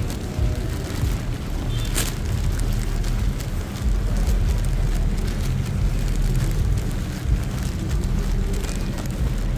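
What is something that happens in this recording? Footsteps splash softly on wet pavement.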